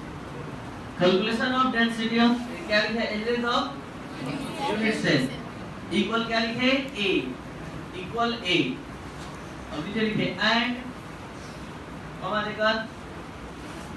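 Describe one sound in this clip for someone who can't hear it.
A man explains with animation through a headset microphone.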